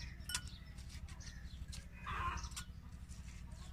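A plate lid clinks as it is lifted off a glass.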